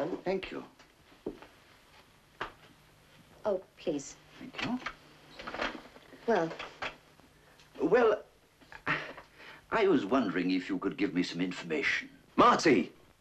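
A woman speaks briefly.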